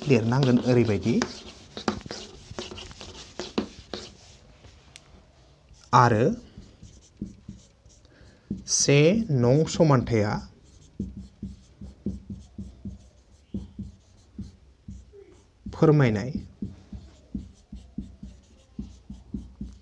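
A marker pen squeaks and taps on a whiteboard.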